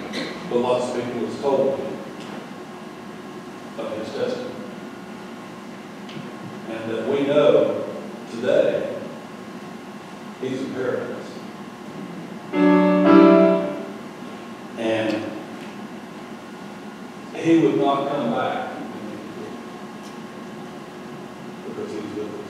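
A man speaks slowly and calmly into a microphone in a large echoing hall.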